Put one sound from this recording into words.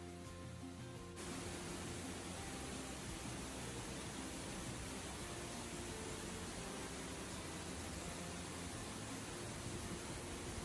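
A waterfall roars and splashes steadily nearby.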